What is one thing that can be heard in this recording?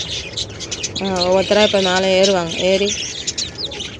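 A hen makes a low, drawn-out call.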